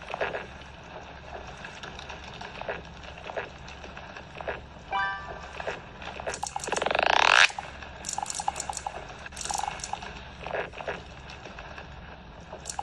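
A mobile game plays short pops and chimes through a small speaker.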